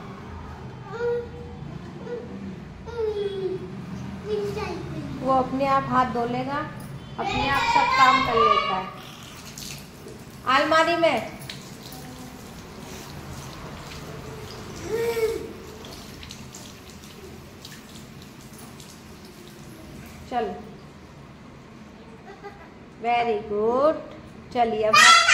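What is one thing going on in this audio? A small child talks and babbles excitedly close by.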